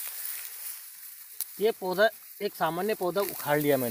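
Grass stalks rustle as a plant is pulled from the soil.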